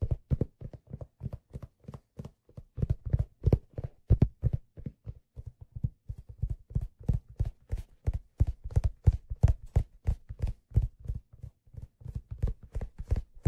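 Fingers tap and scratch on leather close to the microphone in quick, soft bursts.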